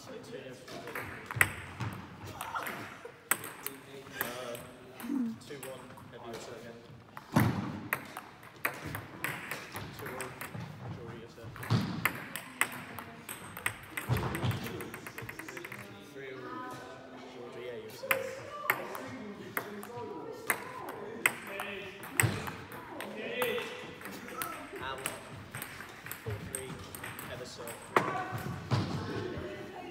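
Young people talk and laugh in a large echoing hall.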